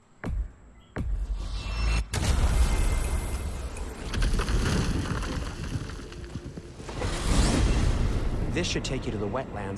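A magical gateway roars with a rushing whoosh.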